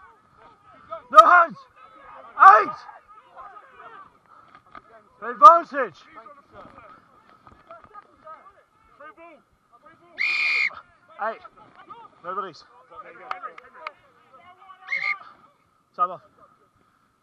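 Men shout loudly close by outdoors.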